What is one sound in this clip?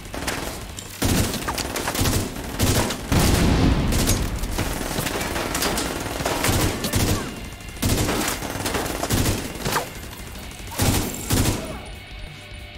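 Rifle gunfire rattles in loud bursts.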